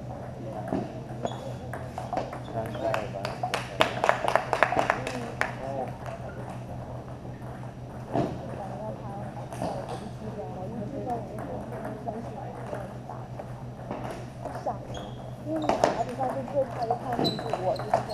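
Table tennis balls click against paddles and tables in an echoing hall.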